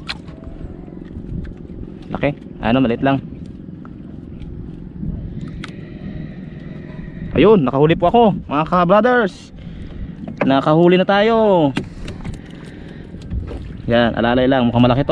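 Water laps gently against a wooden canoe.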